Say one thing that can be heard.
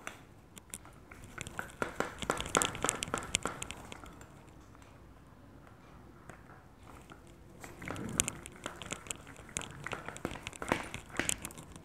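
A metal pipe rolls and clicks over a wooden tabletop.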